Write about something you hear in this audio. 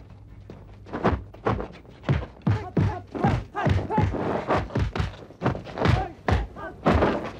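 Blows thud and clothes whoosh in a scuffle.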